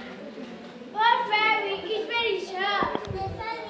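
A child speaks loudly on a stage, in a hall with some echo.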